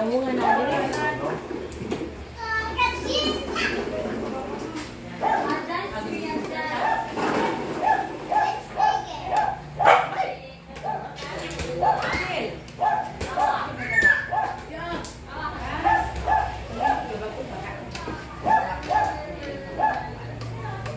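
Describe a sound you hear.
Several women and men chatter with animation close by.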